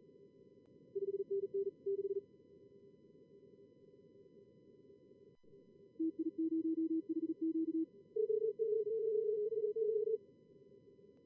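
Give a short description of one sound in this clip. Morse code beeps in quick bursts.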